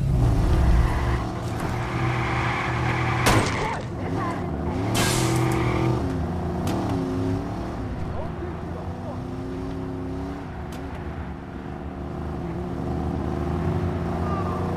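A car engine roars as it speeds along.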